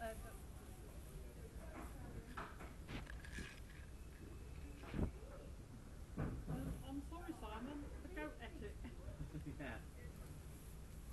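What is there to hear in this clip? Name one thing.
A goat rustles and nibbles at dry hay close by.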